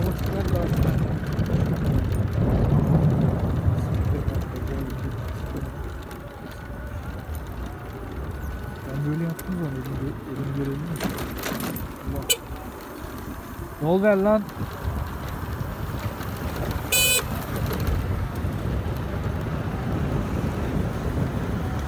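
Wind rumbles and buffets against the microphone while riding.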